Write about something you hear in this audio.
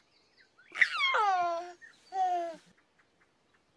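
A baby giggles and coos up close.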